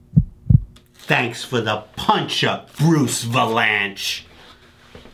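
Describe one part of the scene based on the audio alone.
An older man speaks up loudly and sharply nearby.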